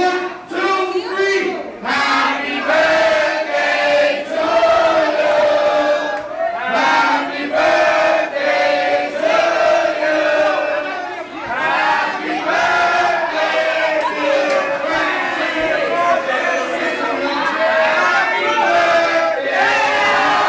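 A crowd of young men and women cheers and shouts excitedly nearby.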